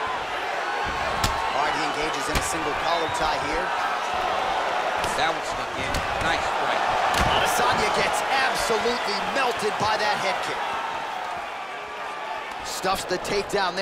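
Punches land on a body with dull thuds.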